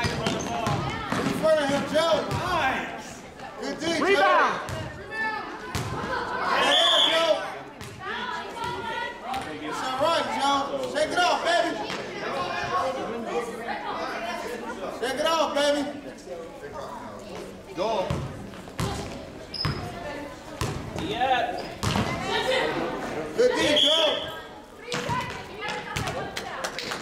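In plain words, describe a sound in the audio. A crowd of children and adults shout and cheer in a large echoing gym.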